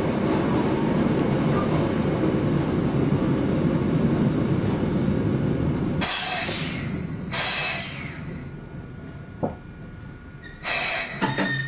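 A train rumbles along the tracks and slows to a stop.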